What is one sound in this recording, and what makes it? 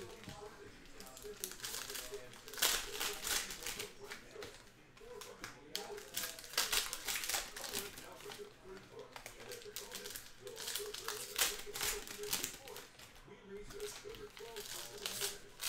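Trading cards slap and shuffle onto a stack.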